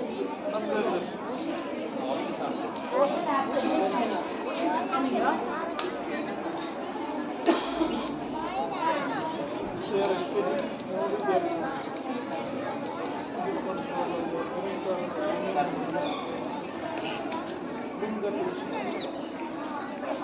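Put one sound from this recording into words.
Many young children chatter and call out loudly in an echoing hall.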